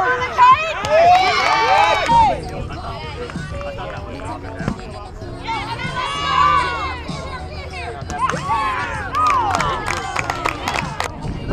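Young women shout and cheer outdoors.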